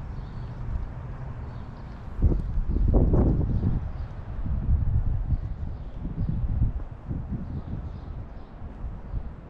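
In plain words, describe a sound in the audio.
Wind gusts blow outdoors, buffeting in low rumbles.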